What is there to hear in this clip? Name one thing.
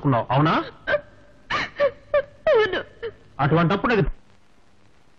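A young woman speaks tearfully close by, her voice breaking with sobs.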